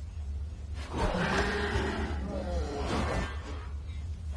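A magic spell shimmers and whooshes.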